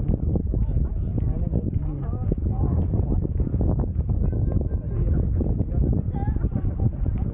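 A group of young people chat nearby.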